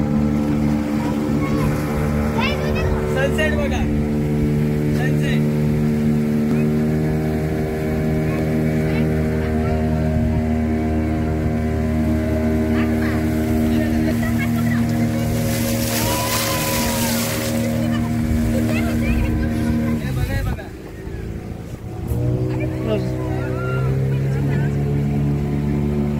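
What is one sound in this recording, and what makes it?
A boat engine hums steadily and loudly.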